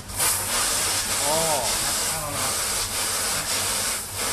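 Water sprays steadily from a row of nozzles with a hiss.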